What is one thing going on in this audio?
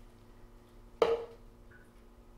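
A bowl clunks against a pan.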